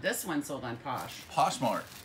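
Plastic wrapping crinkles in a man's hands.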